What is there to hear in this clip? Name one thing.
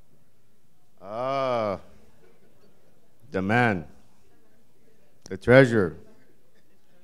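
A middle-aged man speaks through a microphone in short phrases, his voice carrying through the hall.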